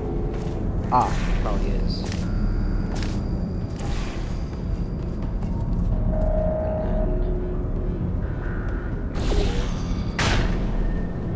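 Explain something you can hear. A sci-fi gun fires with sharp electric zaps.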